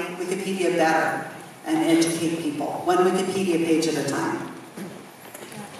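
A woman speaks calmly into a microphone, heard through loudspeakers in a large hall.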